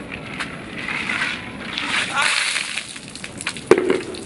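Water splashes down onto the ground.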